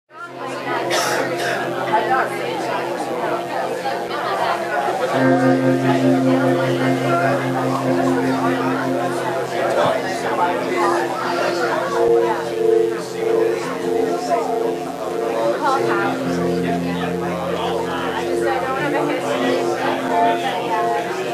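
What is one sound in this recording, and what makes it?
A bass guitar plays a low line.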